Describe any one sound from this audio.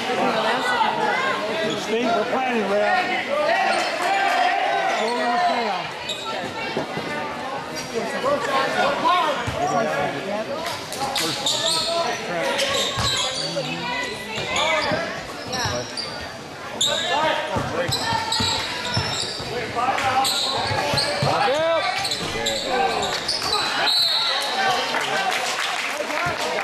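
A crowd of spectators cheers and chatters loudly in a large echoing gym.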